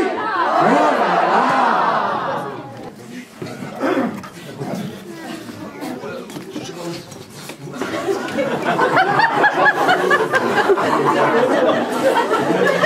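A crowd of children cheers and shouts loudly in an echoing hall.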